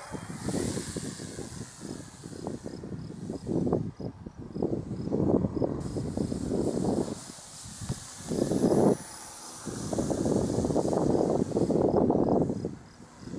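Wind gusts loudly against the microphone outdoors.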